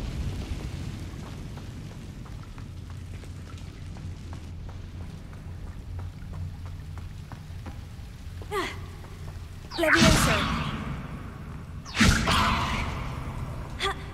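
Footsteps tap on stone ground.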